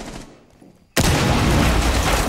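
A loud blast booms nearby.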